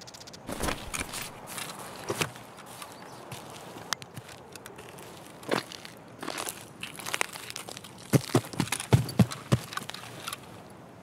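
Footsteps thud on a wooden floor and then on the ground outdoors.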